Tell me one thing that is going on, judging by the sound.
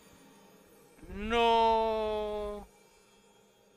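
A bright magical chime swells and rings out, then stops.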